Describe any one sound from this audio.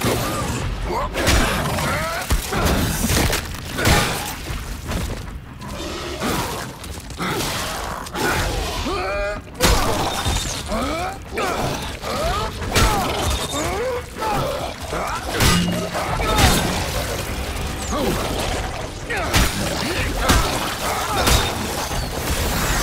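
Creatures shriek and screech close by.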